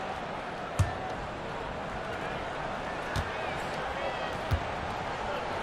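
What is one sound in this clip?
A basketball bounces a few times on a hard court.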